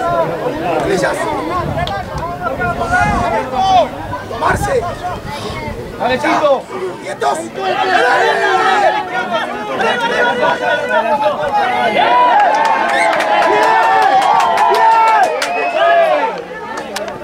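Young men shout and call to one another outdoors.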